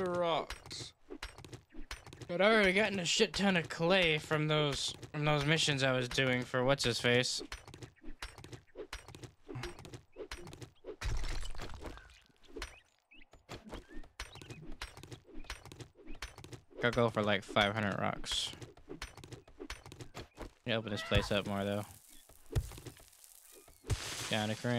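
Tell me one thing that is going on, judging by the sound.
A stone axe chops at rock with repeated dull knocks.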